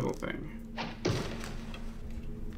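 An arrow is shot from a bow with a sharp whoosh.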